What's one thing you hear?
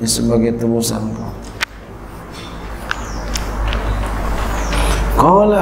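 A man speaks calmly into a microphone, in a slow chanting voice.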